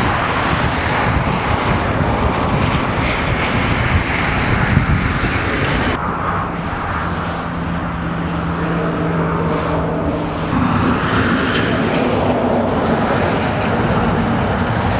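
A truck engine idles nearby.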